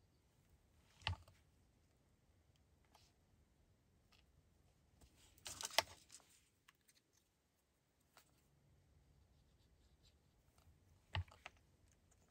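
A plastic glue bottle is set down on a tabletop with a knock.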